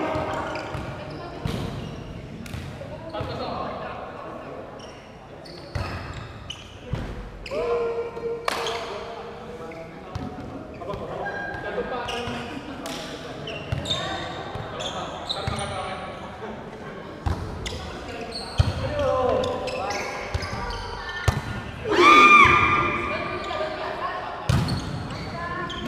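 Young men call out to each other across the court.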